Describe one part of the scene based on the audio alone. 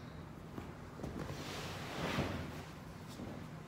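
Something is handled close by with soft thumps and bumps.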